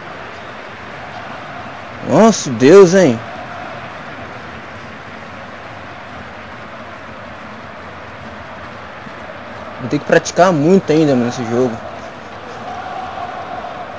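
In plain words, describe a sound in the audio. A large stadium crowd roars steadily in the distance.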